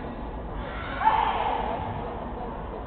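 A young man shouts sharply once in a large echoing hall.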